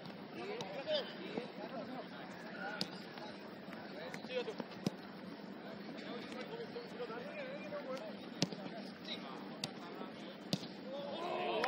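A football thumps off a foot now and then.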